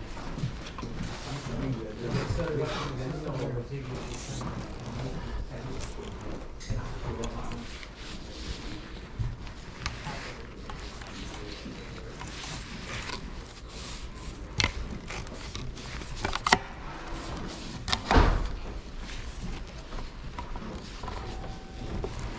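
Metal tripod legs click and knock as hands handle them up close.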